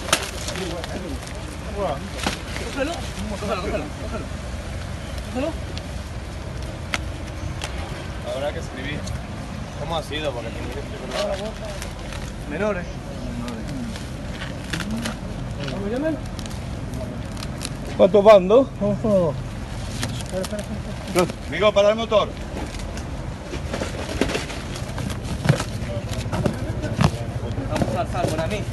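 Men talk nearby in short, excited bursts.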